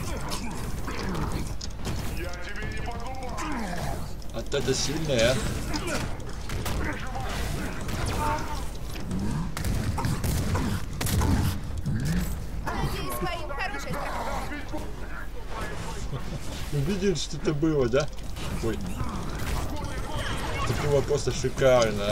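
Heavy blows thud and crash during a brawl.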